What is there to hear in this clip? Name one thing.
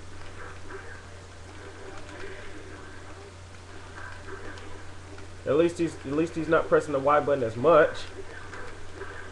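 Fighting game hits and blasts play through a television speaker.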